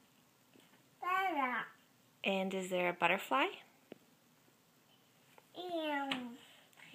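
A toddler babbles and squeals in a high voice close by.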